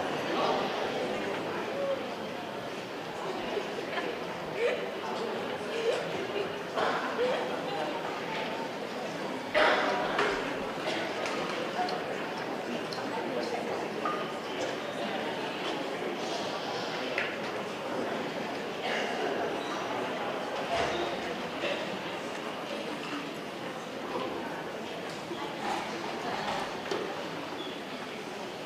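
A crowd of people chatters and murmurs in a large hall.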